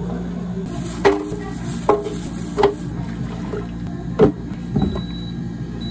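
Frozen fruit thuds into a plastic blender jug.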